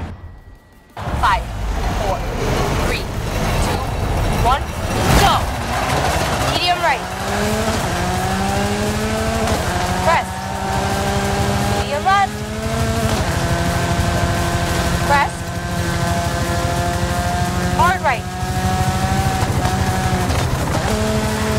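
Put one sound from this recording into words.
A rally car engine roars and revs higher, dropping in pitch at each gear change.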